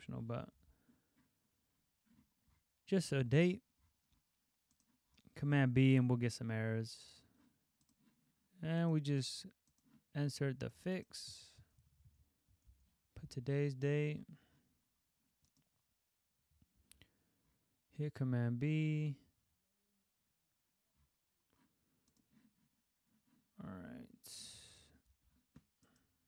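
A young man talks calmly and closely into a microphone, in short bursts with pauses.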